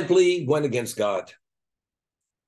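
An elderly man speaks calmly through a microphone on an online call.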